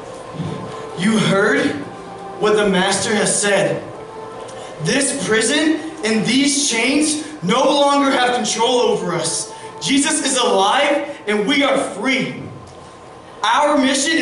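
A young woman sings through a microphone in a large hall.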